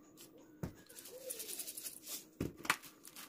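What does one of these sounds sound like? Seeds patter down onto greens in a bowl.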